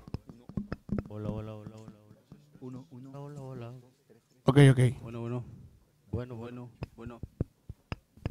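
A group of young men sing together through a microphone.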